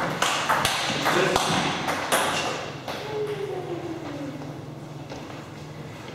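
A ping-pong ball bounces and rolls on a hard floor.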